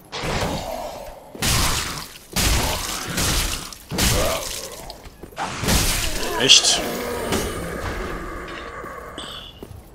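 Heavy weapon blows clash and thud.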